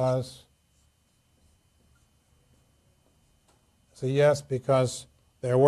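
A man speaks calmly and clearly up close, with pauses.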